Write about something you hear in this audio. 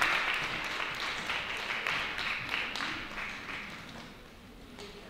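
An audience applauds in a large room, and the clapping fades away.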